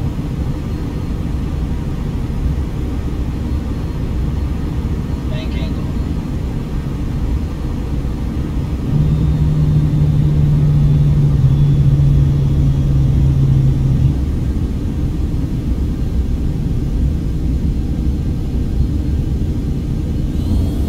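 Jet engines roar with a steady low rumble inside an airliner cabin.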